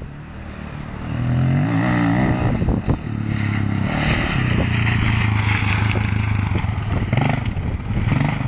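A dirt bike engine revs nearby and roars past.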